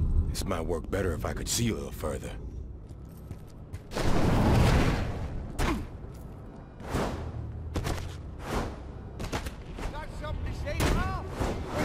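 Heavy footsteps run quickly on hard ground.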